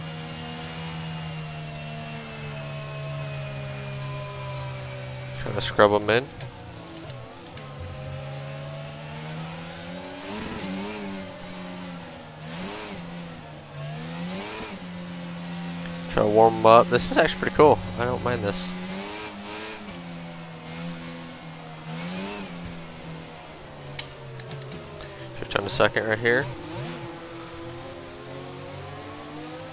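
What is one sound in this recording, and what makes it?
A racing car engine hums steadily, its pitch rising and falling as the car speeds up and slows down.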